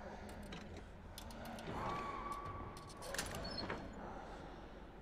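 Someone rummages through a wooden chest.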